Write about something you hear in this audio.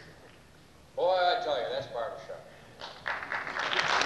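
An elderly man speaks calmly through a microphone and loudspeakers.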